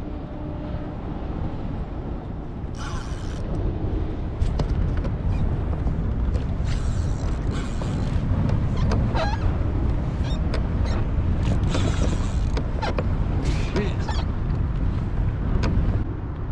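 Wind buffets loudly outdoors on open water.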